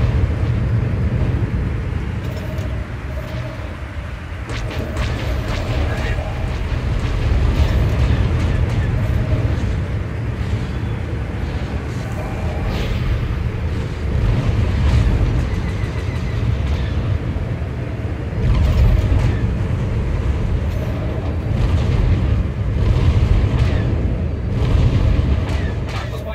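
A spaceship engine rumbles low and steady.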